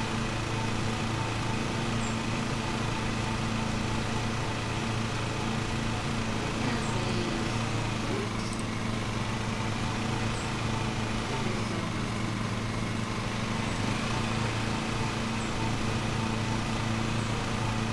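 A lawn mower engine hums steadily.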